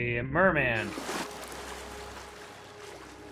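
Water rushes and splashes.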